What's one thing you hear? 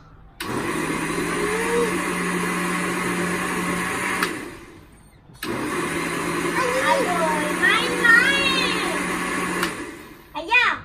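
A blender whirs loudly in short bursts.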